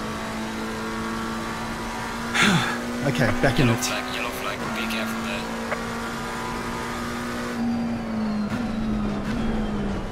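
A race car engine drones steadily and winds down toward the end.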